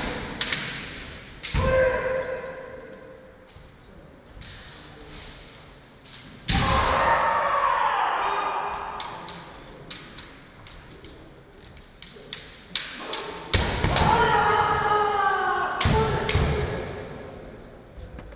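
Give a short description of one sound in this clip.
Bamboo swords clack and knock against each other.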